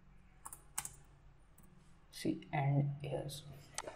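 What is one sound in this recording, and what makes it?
Keys click on a computer keyboard.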